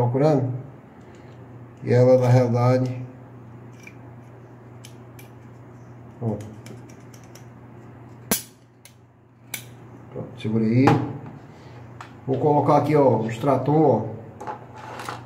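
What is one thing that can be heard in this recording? Small plastic parts click and snap as they are fitted together.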